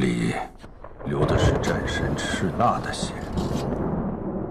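Thunder rumbles loudly.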